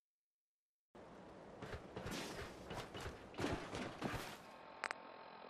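Footsteps scuff across concrete outdoors.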